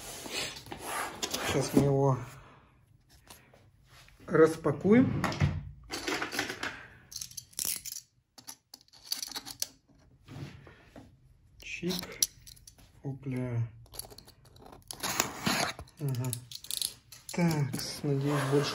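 A cardboard box scrapes and thumps as it is handled.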